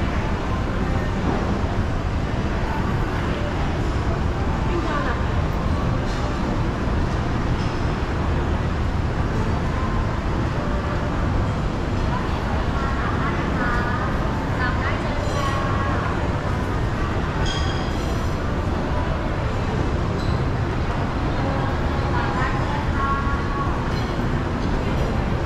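A crowd murmurs and chatters around a large echoing hall.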